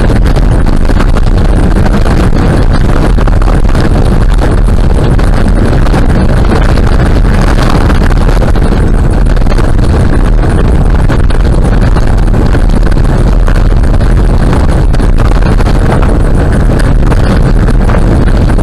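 Tyres rumble and crunch steadily over a gravel road.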